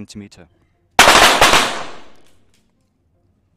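A pistol fires a single loud shot that rings out and fades in an echoing hall.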